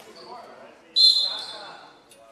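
A referee's whistle blows once, short and sharp.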